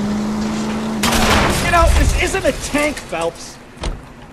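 Car tyres screech as a car brakes to a stop.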